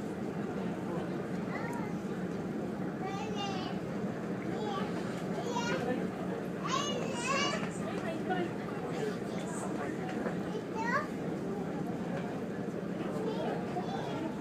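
Water washes and splashes steadily on all sides.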